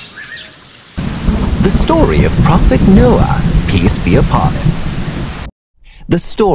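Heavy rain pours down.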